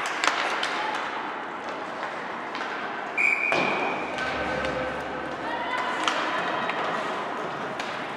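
Skates scrape across the ice in an echoing rink.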